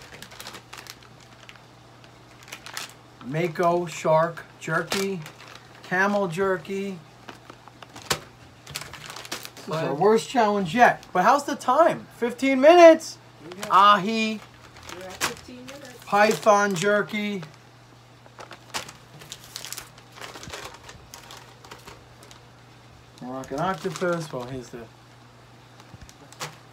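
Plastic packaging crinkles in hands.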